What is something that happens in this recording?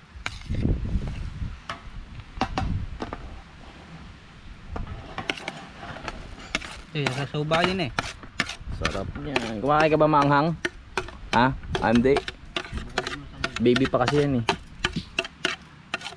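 A knife scrapes chopped onion across a plastic plate.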